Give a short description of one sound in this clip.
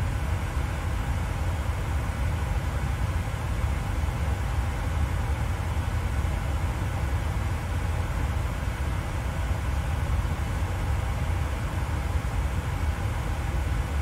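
A jet airliner's engines roar steadily in flight.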